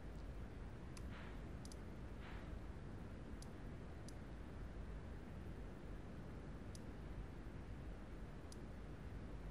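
Soft interface ticks sound now and then.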